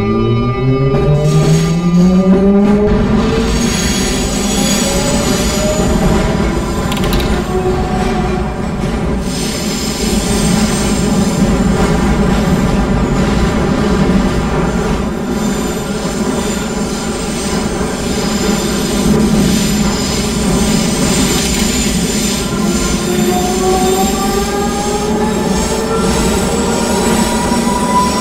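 A train's electric motors whine, rising in pitch as the train speeds up.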